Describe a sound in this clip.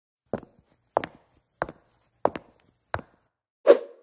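Footsteps tap in an even rhythm.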